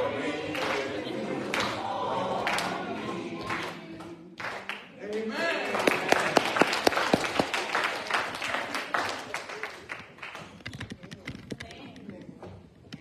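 A congregation sings together.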